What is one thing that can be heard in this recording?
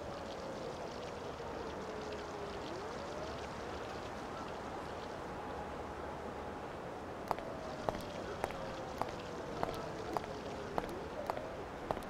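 City traffic hums steadily.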